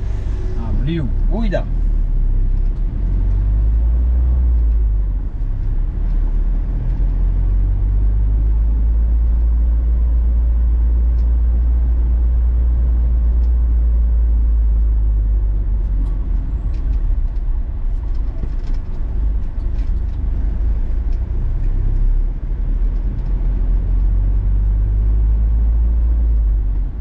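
A car engine hums steadily while driving, heard from inside the car.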